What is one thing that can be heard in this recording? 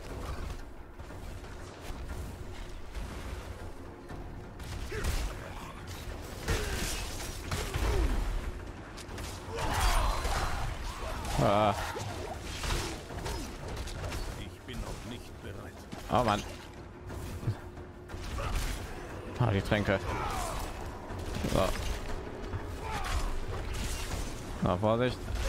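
Spells and weapon blows crackle and crash in a fast fight.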